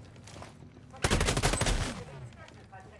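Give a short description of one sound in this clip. A suppressed rifle fires a rapid burst of shots.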